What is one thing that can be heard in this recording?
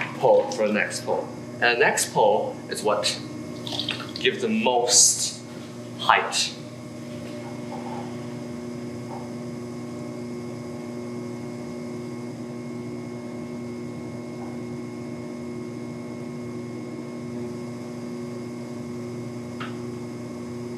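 Wet clay squelches softly under fingers and a sponge.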